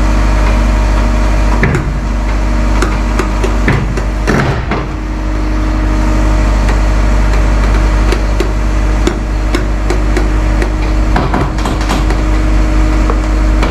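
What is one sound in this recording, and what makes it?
A diesel excavator engine rumbles steadily nearby.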